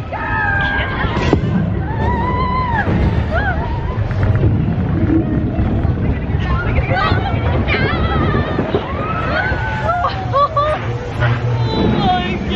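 Young girls scream and cheer excitedly close by.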